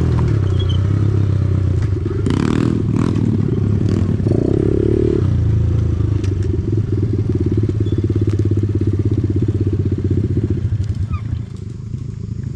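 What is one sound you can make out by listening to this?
A dirt bike engine drones steadily nearby and then fades into the distance.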